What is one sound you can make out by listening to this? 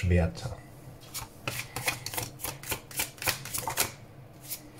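Playing cards flick and slap quickly as they are shuffled by hand.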